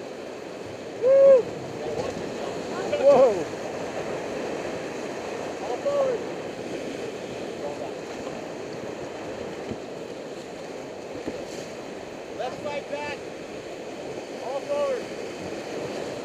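Young men and women shout and whoop excitedly nearby.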